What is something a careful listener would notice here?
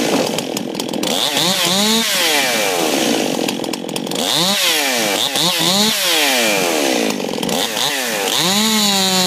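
A chainsaw engine revs up and down in short bursts.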